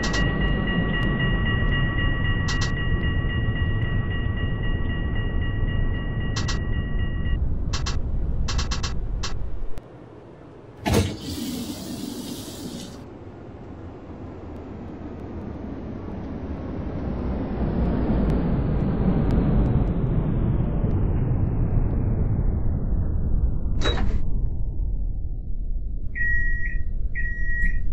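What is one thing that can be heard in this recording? A tram rumbles steadily along the rails.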